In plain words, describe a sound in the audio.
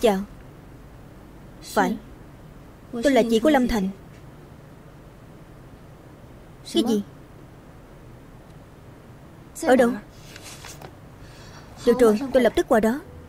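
A young woman speaks calmly into a phone, close by, in short phrases with pauses.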